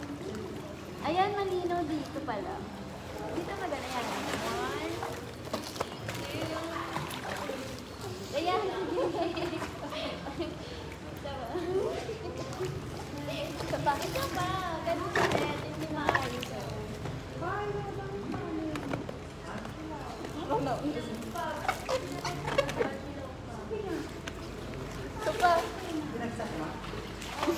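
Water splashes and laps in a pool.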